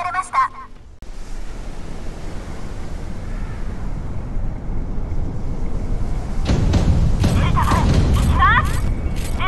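Ocean waves wash and churn.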